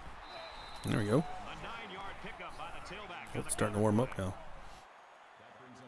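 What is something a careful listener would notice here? A stadium crowd cheers and roars.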